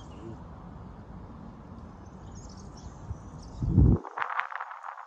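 Wind blows across an open outdoor space.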